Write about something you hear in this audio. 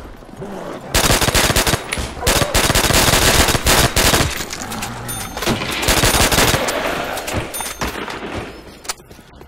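Rapid gunfire rattles loudly and echoes.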